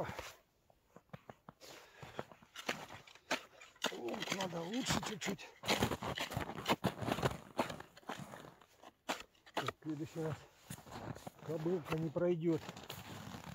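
An ice chisel strikes and chips at ice with sharp knocks.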